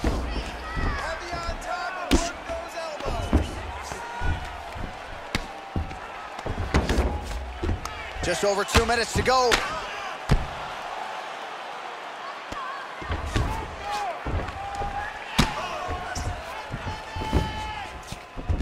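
Punches thud heavily against a body in quick bursts.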